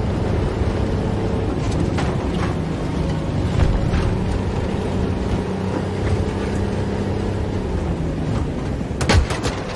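A tank engine rumbles and its tracks clatter steadily.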